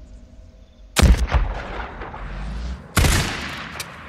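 A rifle fires with a loud, sharp crack.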